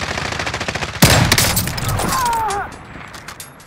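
A scoped rifle fires a single loud shot.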